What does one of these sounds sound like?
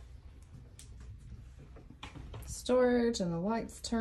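A wooden cabinet door swings open.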